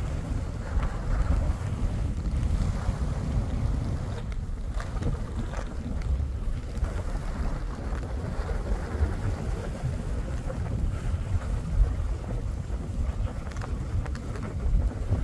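Skis hiss and swish through soft snow.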